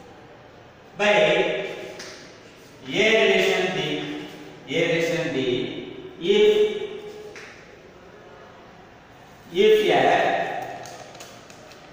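A man speaks clearly in short phrases, as if teaching.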